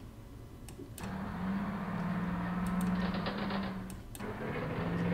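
A tank engine rumbles as it moves.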